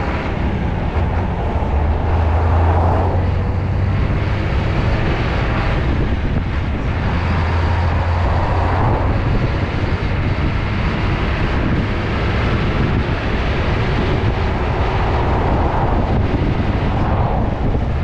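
Tyres roar on a paved road.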